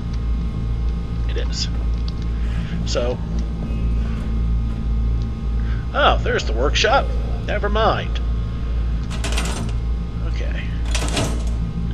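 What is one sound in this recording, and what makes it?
A deep machine hum drones steadily.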